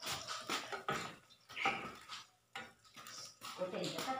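A metal spatula scrapes in a frying pan.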